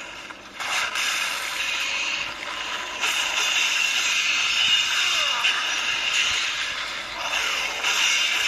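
Video game combat sounds clash and whoosh from a small speaker.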